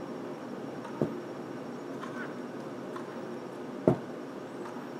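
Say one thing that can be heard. Tennis ball hits pop from a game on a phone speaker.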